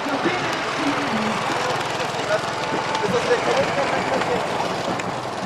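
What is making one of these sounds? Spectators cheer and call out from the roadside.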